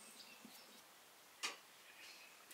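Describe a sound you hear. A spoon clinks against a glass bowl.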